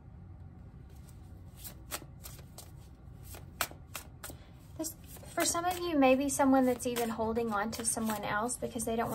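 Cards tap and rustle on a table.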